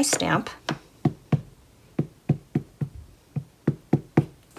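A rubber stamp taps repeatedly on an ink pad.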